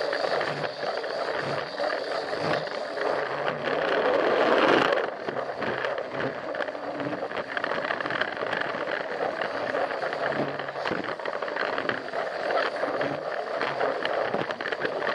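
A toy train rattles and clacks along plastic track close by.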